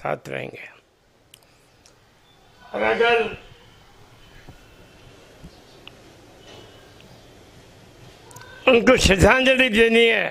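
An elderly man speaks calmly into a microphone, close by.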